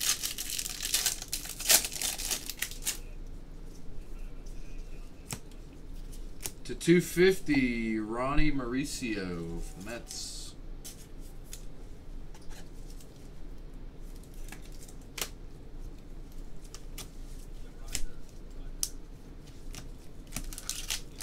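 Plastic card wrappers crinkle and rustle as they are torn open.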